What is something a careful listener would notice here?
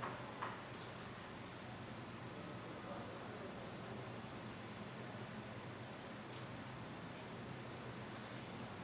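A laptop keyboard clicks softly under quick typing.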